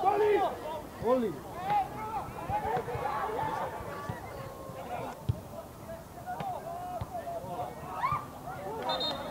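Young men shout across an open field.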